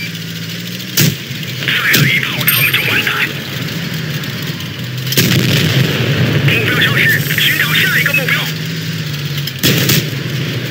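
A tank cannon fires with a sharp bang.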